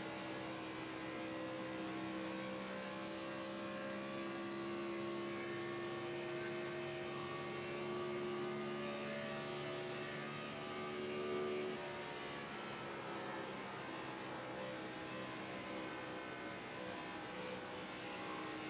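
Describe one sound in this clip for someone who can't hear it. A race car engine roars at high, steady revs, then drops in pitch briefly before rising again.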